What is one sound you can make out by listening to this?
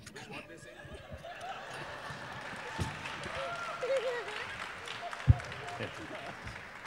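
An audience laughs and cheers in a large hall.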